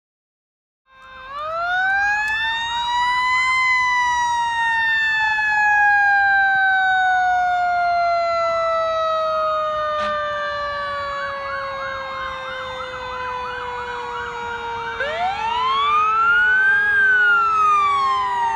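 A fire engine siren wails loudly, rising and falling as it approaches.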